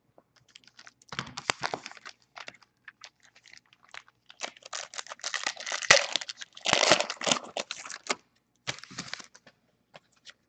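Foil card wrappers crinkle and tear as packs are opened.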